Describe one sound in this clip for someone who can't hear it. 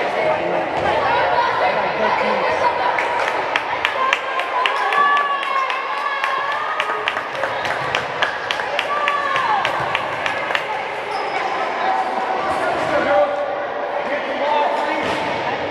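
Many girls chatter and call out in a large echoing hall.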